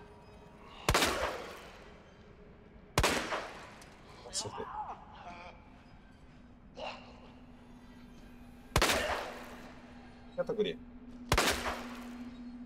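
Gunshots ring out one at a time, with a short echo.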